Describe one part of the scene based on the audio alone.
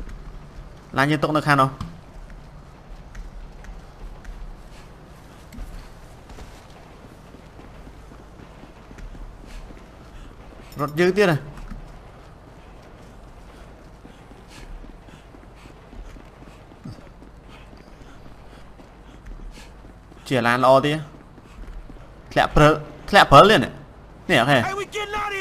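A young man talks into a close microphone in short, lively bursts.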